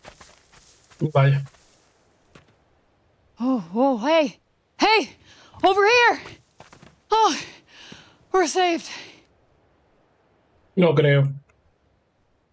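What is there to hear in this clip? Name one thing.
A man speaks through a headset microphone.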